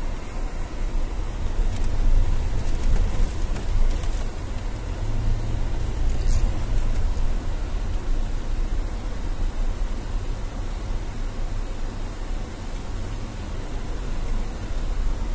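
A car's engine rumbles from inside the cabin while driving.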